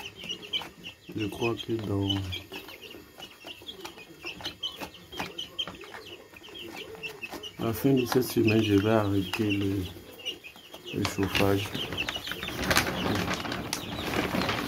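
Many chicks peep and cheep close by.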